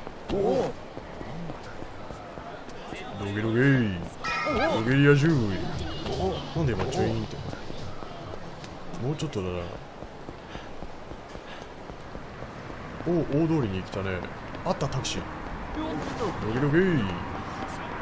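Footsteps run quickly on pavement.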